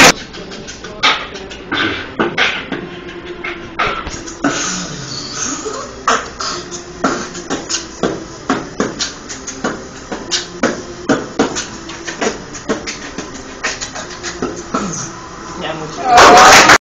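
A young man beatboxes a fast, punchy rhythm close by.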